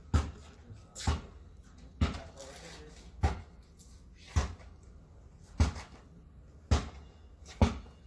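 A basketball bounces repeatedly on concrete outdoors.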